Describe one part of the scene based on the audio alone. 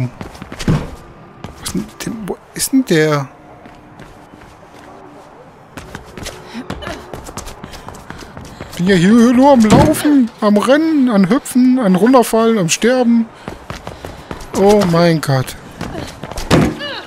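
Footsteps run quickly over a hard rooftop.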